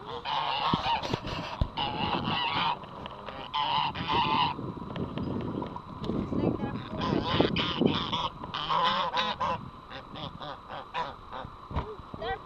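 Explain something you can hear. Geese honk loudly and repeatedly close by.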